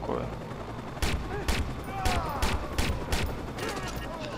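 Pistol shots fire in quick succession.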